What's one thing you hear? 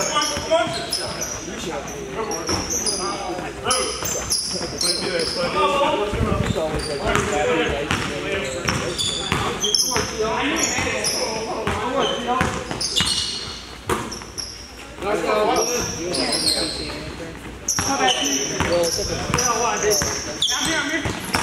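Men shout and call out to each other across an echoing hall.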